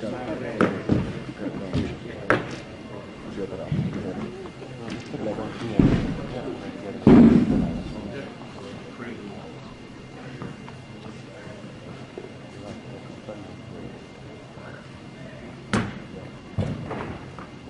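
A heavy ball lands with a dull thud in an echoing hall.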